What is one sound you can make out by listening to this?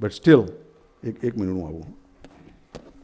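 An elderly man speaks close by, with animation.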